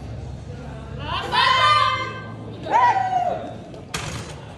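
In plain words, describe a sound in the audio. Men shout encouragement in a large hall.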